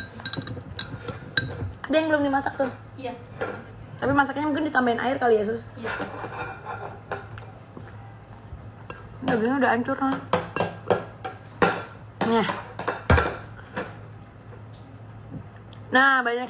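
Utensils clink against a plate.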